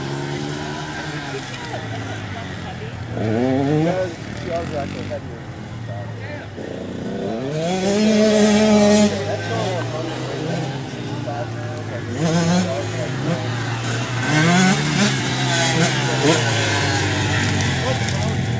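Small dirt bike engines buzz and rev up and down nearby.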